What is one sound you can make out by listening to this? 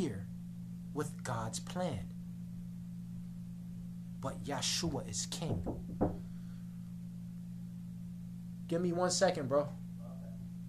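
A young man talks calmly close by, in short bursts with pauses.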